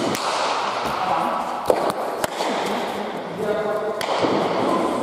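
A ball is struck hard by hand.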